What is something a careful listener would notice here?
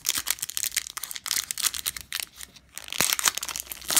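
A foil pack tears open.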